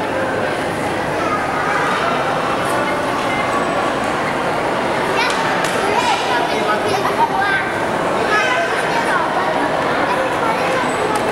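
A crowd of men, women and children chatters throughout a large echoing hall.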